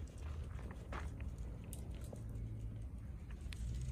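Deer hooves patter quickly across dry dirt.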